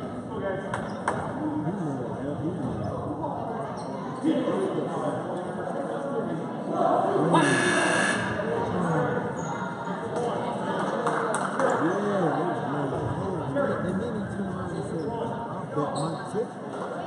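Spectators chatter throughout a large echoing gym.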